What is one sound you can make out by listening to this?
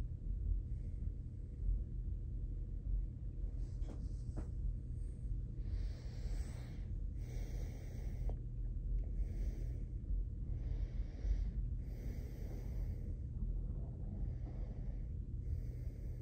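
Hands fumble and rustle against a small device close by.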